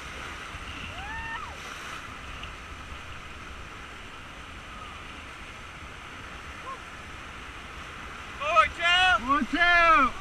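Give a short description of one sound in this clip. Rushing river water roars steadily outdoors.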